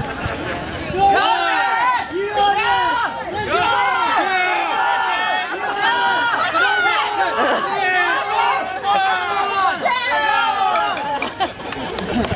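A group of performers chant and shout loudly in rhythm.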